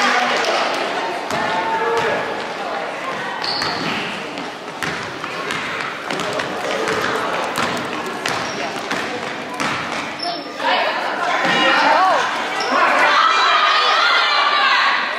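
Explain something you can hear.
Sneakers squeak on a wooden floor in a large echoing gym.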